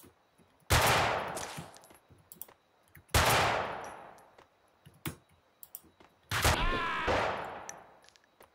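Rifle shots crack loudly and echo.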